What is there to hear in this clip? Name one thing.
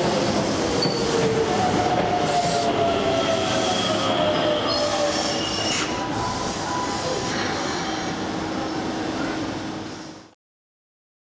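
A train rolls into a station and slows down with a rumble.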